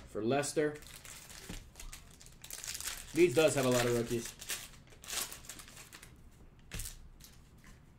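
Foil packs crinkle.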